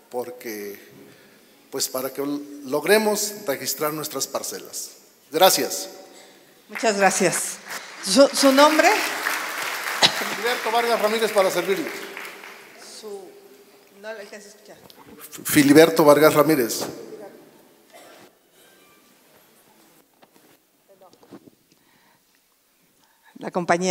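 A woman speaks into a microphone, heard over loudspeakers in a large room.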